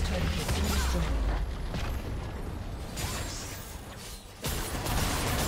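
Magic spells whoosh and crackle as game characters fight.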